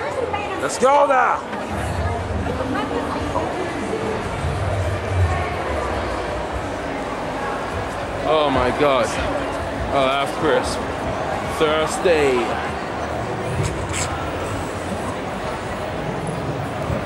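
A crowd of people chatters all around in a large, busy hall.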